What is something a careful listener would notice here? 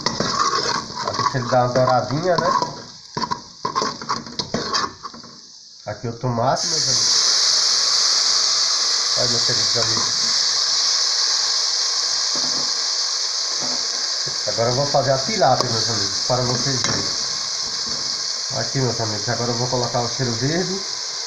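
Hot oil sizzles in a pot, turning to a loud steady hiss when food drops in.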